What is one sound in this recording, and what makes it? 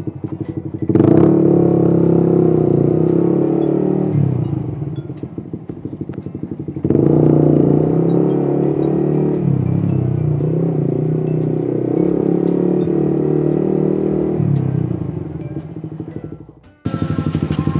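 A motorcycle engine revs up and accelerates, rising and falling as it rides.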